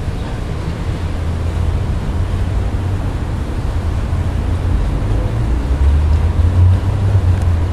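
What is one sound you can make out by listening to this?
Water splashes in a small plastic pool.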